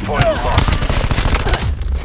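Gunfire rattles in quick bursts.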